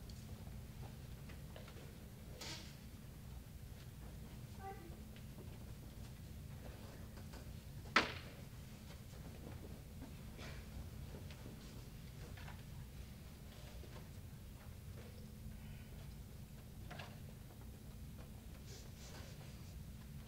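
Footsteps fall softly on a carpeted floor.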